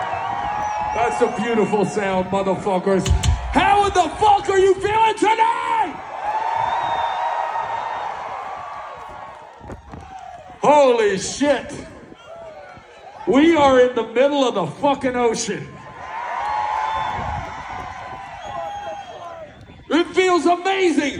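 A man speaks loudly to the crowd through a loudspeaker system.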